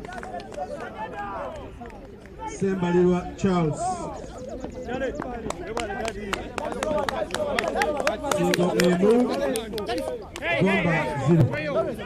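Young men shout and cheer excitedly outdoors.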